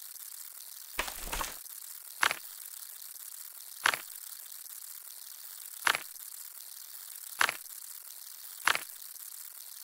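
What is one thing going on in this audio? Menu pages flip with short swishing clicks.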